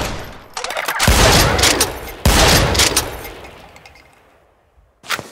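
A heavy gun fires loud blasts.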